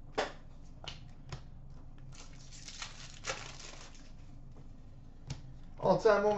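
Cards are shuffled and flicked through by hand.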